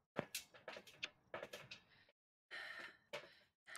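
Footsteps run quickly across a metal floor.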